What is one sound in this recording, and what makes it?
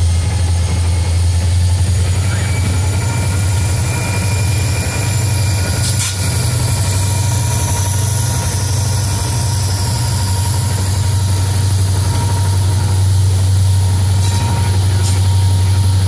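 Steel wheels clack and squeal on the rails as a train rolls past.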